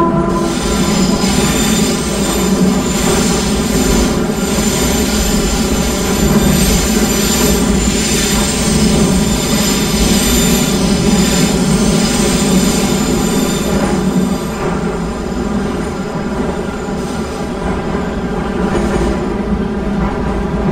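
A train's motor whines steadily.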